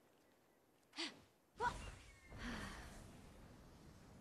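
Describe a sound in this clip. Wings snap open with a sharp whoosh.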